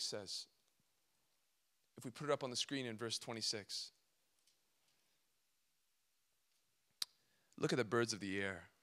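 A young man speaks calmly through a microphone, with pauses.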